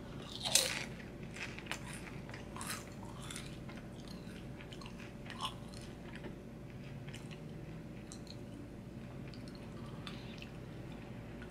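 A young man chews crunchy food.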